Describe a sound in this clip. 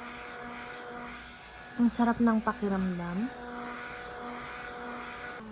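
A small electric fan whirs steadily close by.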